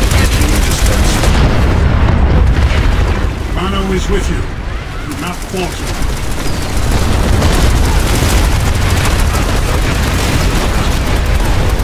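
A large explosion roars and rumbles.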